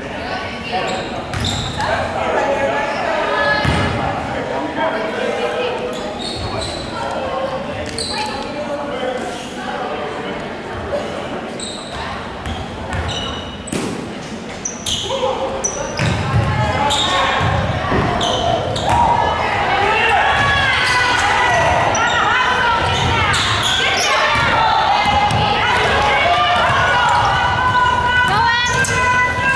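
Young players chatter and call out across an echoing gym.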